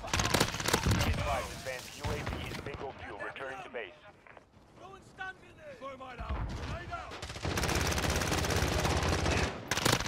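An automatic rifle fires in rapid bursts.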